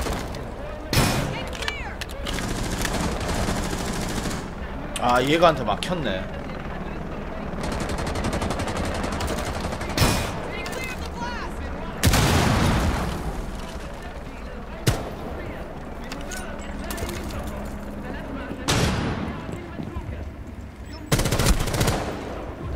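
A rifle fires sharp shots with a short echo.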